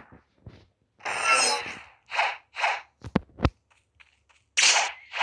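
Short whooshing bursts of magic come and go.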